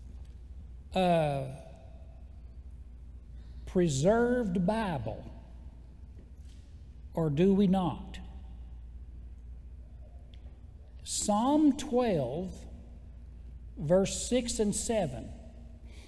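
An older man speaks slowly through a microphone, with long pauses.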